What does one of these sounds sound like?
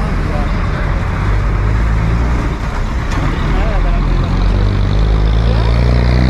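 Traffic hums along a city street outdoors.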